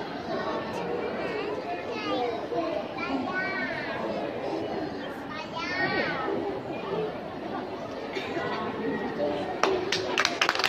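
A young girl speaks clearly and carefully, close by.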